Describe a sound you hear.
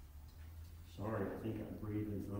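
A man speaks through a microphone in an echoing room.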